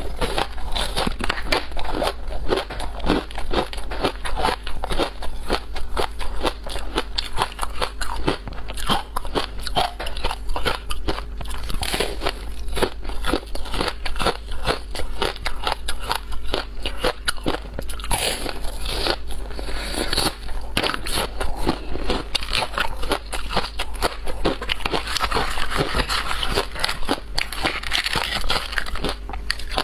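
A woman crunches and chews frozen ice close to a microphone.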